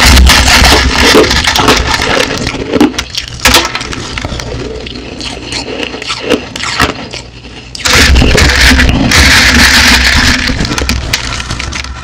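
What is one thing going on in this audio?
Crushed ice crunches loudly close up as a woman chews it.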